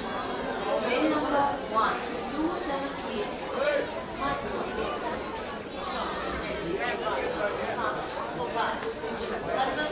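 Footsteps shuffle on a hard floor and stairs.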